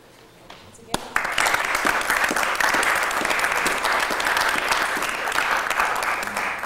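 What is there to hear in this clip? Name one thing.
A small crowd applauds loudly.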